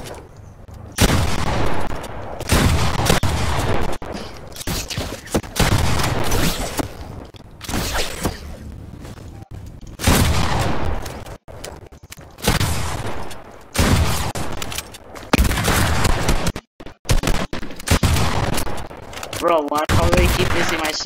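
Gunshots crack in loud bursts.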